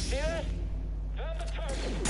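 A lightsaber hums as it swings.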